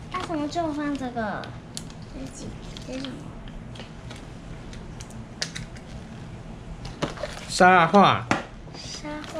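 Paper rustles and crinkles in small hands.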